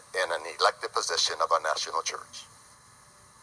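A man speaks loudly and with feeling through a microphone.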